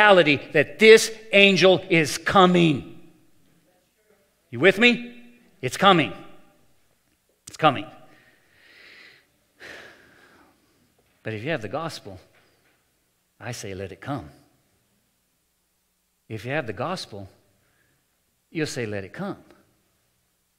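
An older man speaks calmly into a microphone, with pauses, in an echoing hall.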